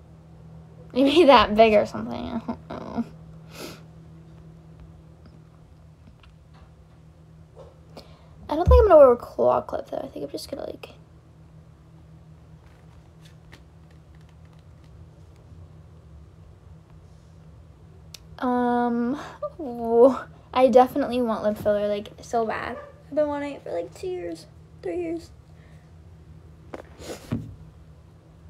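A young woman speaks casually and close by, in bursts with pauses.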